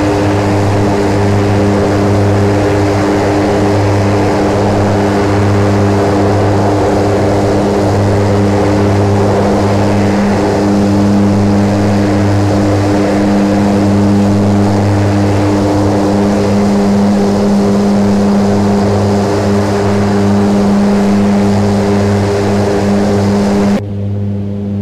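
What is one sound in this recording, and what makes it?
A propeller plane's engines drone steadily outside in flight.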